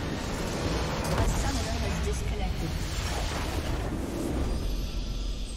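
A large crystal structure explodes with a booming blast.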